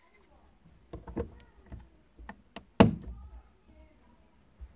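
Plastic parts click and knock close by.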